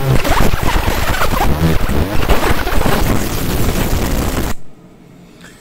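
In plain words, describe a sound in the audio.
A laser engraver buzzes and hisses steadily as it burns into wood.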